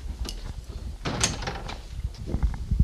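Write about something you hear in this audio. A young woman laughs lightly nearby.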